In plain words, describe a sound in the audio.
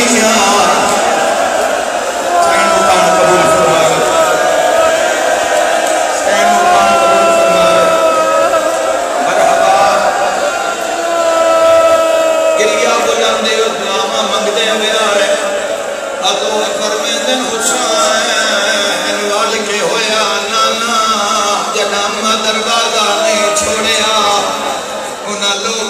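A man chants loudly through a loudspeaker.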